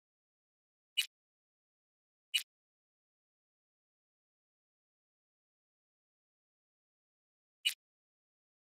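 Short electronic clicks sound as menu options change.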